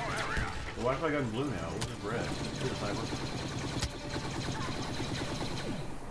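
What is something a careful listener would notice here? Laser guns fire in sharp bursts.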